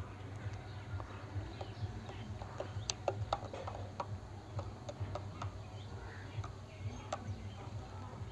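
A metal spoon stirs and clinks inside a glass.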